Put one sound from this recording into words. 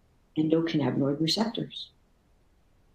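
A middle-aged woman speaks calmly through a microphone on an online call.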